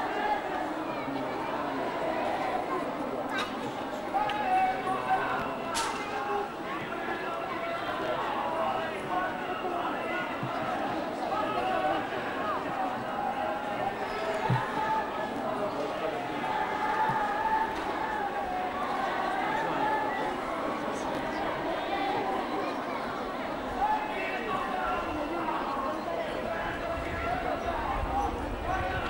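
A dense outdoor crowd of men and women chatters all around.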